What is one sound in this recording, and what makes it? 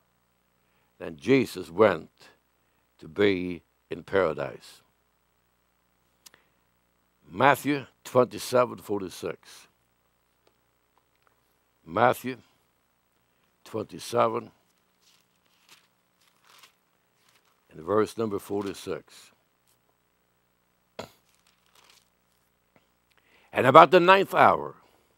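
An elderly man speaks slowly and deliberately into a microphone, with pauses between phrases.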